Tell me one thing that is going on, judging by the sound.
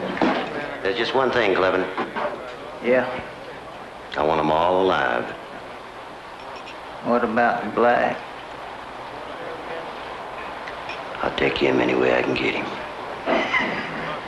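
A man speaks gruffly and calmly close by.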